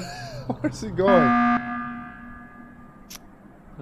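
An alarm blares loudly.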